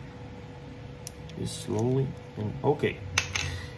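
A plastic cable remote clicks and rustles in the hands.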